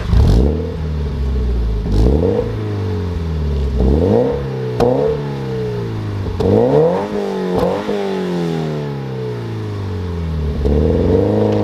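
A sports car engine revs up sharply and falls back again and again close by.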